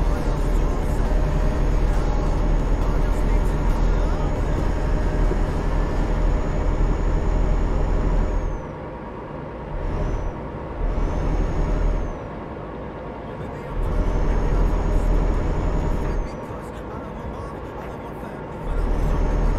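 A truck engine drones steadily at highway speed.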